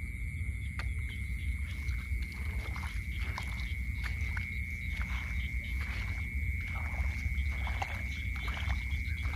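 Footsteps swish and rustle through tall dry grass at an even pace.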